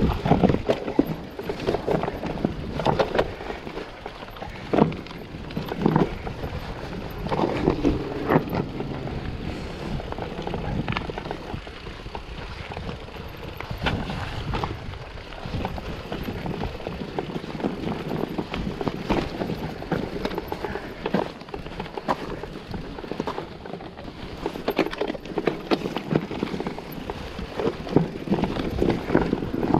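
A mountain bike's frame and chain clatter and knock over bumps.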